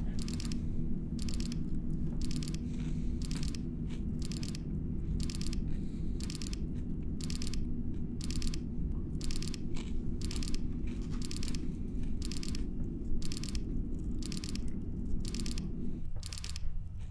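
Machinery hums steadily in a low drone, then drops off near the end.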